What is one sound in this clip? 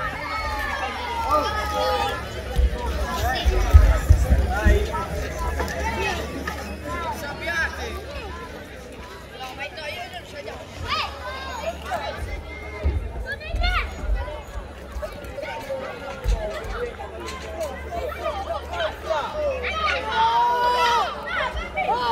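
A crowd of children and adults chatters and calls out outdoors.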